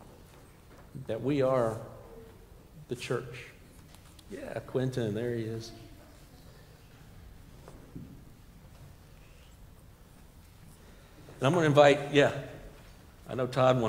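A man speaks calmly through a microphone in an echoing hall, with long pauses.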